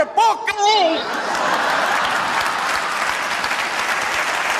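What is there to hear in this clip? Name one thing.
An audience laughs and cheers in a large hall.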